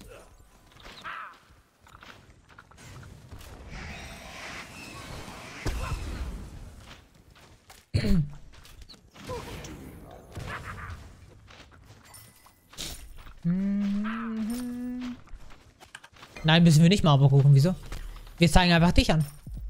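Game combat effects clash and thud.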